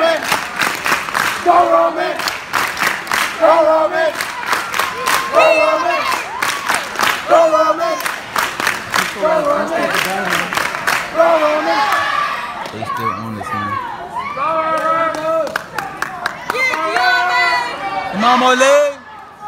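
A crowd claps hands in a steady rhythm.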